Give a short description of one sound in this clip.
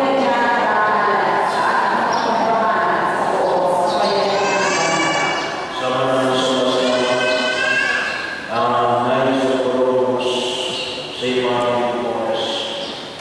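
A group of men and women sing a slow hymn together in an echoing hall.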